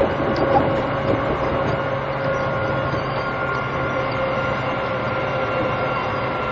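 An electric train hums steadily at a platform.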